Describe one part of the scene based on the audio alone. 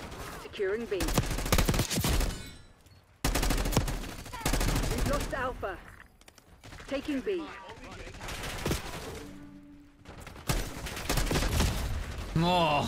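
Gunfire bursts out in rapid rattling volleys.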